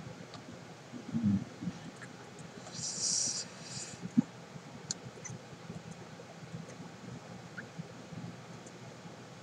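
A young girl speaks quietly and briefly into a microphone.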